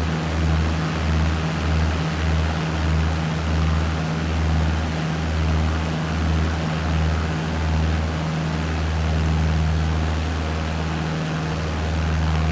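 A small propeller plane's engine drones steadily, with a low pulsing throb.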